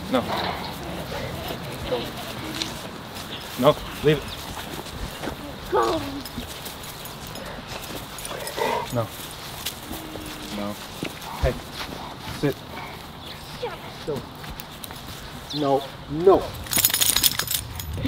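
A man speaks in short calls close by.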